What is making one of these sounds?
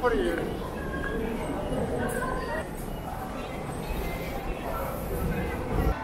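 Footsteps of many people shuffle and tap on a hard floor.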